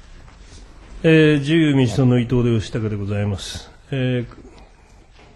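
A second man speaks formally into a microphone.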